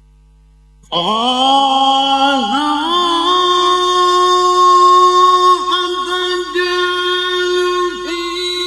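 A man sings loudly and melodically through a microphone, holding long notes.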